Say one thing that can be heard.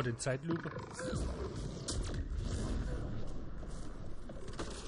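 A burst of energy whooshes and crackles.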